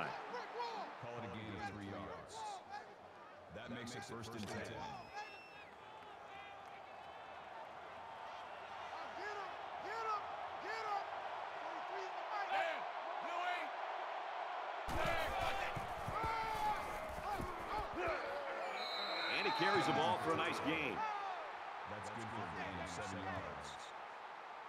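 A stadium crowd roars, growing louder and more excited.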